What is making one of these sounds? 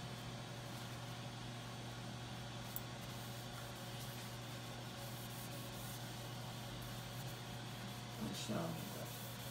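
A cloth rubs softly over a smooth wooden surface.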